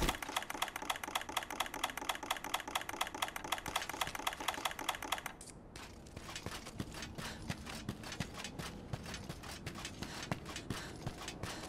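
Footsteps crunch over loose rocks.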